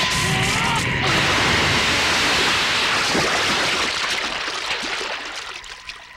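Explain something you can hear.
Water rushes and splashes from a fountain.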